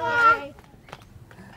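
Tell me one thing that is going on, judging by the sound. A small child shouts in a high voice.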